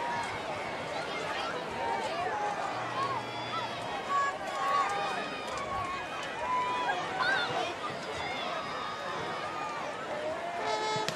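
Many people in a crowd shout and cheer loudly.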